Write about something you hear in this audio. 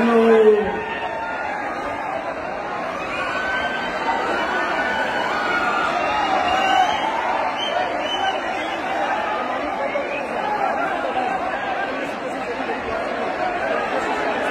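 A crowd chatters loudly and excitedly nearby in a busy, echoing space.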